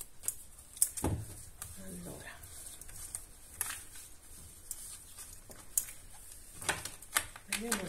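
Playing cards are shuffled, riffling and tapping.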